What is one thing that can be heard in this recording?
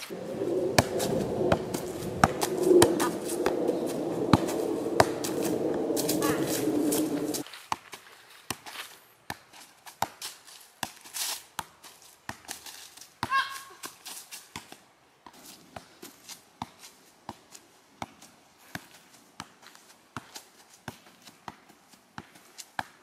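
A ball thumps again and again as it is kicked.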